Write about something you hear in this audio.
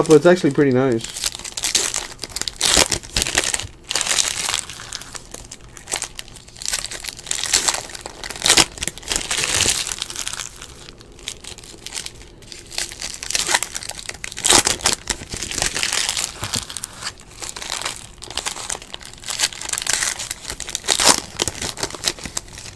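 Foil card packs crinkle and rustle as hands tear them open, close by.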